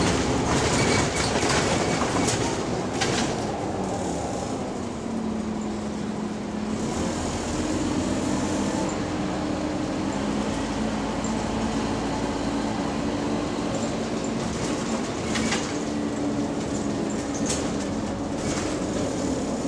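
The bus interior rattles and clatters over bumps.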